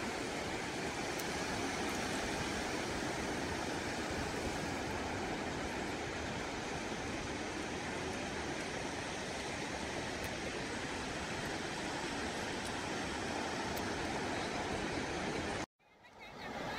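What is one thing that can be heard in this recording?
Waves wash onto a shore with a steady roar.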